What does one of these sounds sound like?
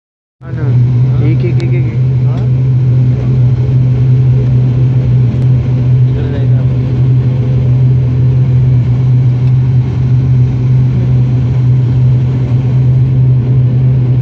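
A propeller engine drones loudly and steadily from close by.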